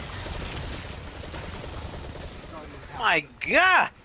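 Gunfire crackles rapidly.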